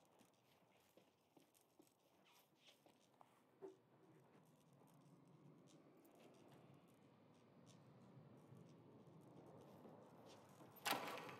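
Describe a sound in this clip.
Electricity crackles and sparks in short bursts.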